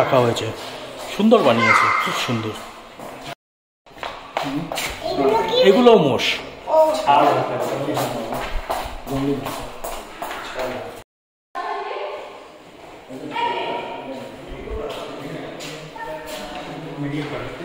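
Men and women talk nearby in an echoing room.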